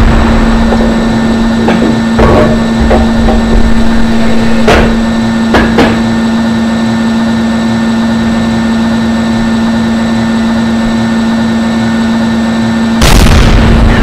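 A tank engine hums steadily.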